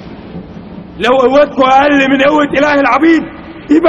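A man cries out loudly in anguish.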